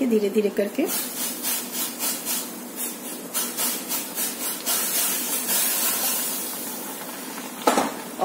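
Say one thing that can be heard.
Dry grains pour into a bubbling pan with a soft, steady hiss.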